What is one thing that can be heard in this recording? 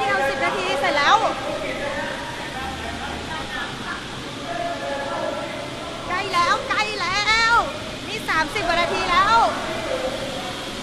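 A young woman shouts angrily close by.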